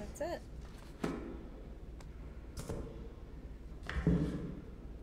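A book thuds down onto a hard surface.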